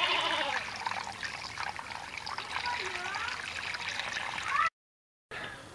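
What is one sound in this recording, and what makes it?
Water pours and splashes onto the ground.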